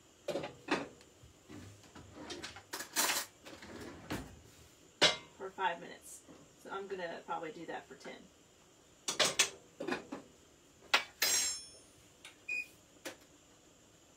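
Pots and dishes clink and clatter close by.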